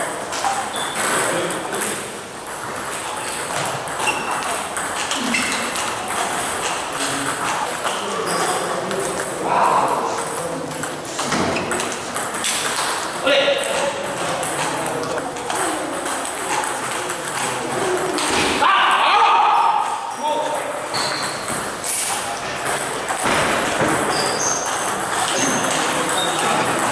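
A table tennis ball clicks back and forth off paddles and a table in a large echoing hall.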